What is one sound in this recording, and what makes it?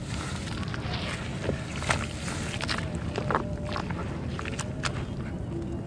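Water splashes and sloshes as hands stir it.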